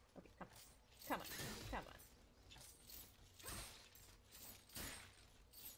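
Blades whoosh and strike in a fight.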